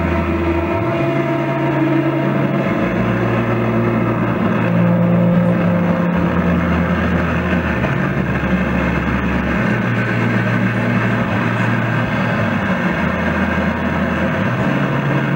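An electric guitar plays a loud, distorted rock riff.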